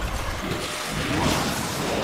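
A nitro boost whooshes loudly.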